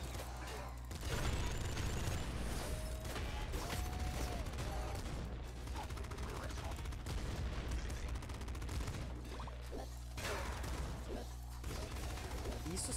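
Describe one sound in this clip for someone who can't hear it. Video game explosions boom.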